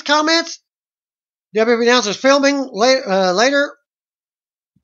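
A man talks with animation close to a webcam microphone.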